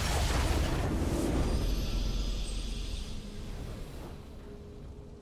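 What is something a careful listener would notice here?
A booming game victory fanfare sounds and slowly fades.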